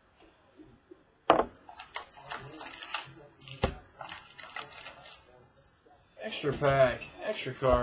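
A cardboard box scrapes and taps as hands open it.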